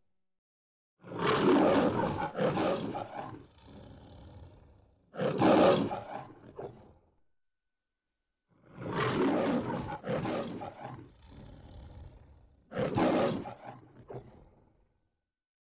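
A lion roars loudly, several times in a row.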